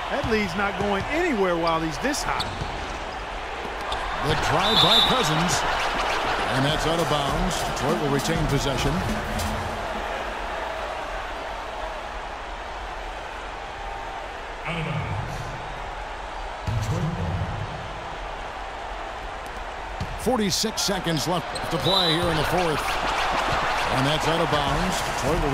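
A crowd cheers and murmurs in a large echoing arena.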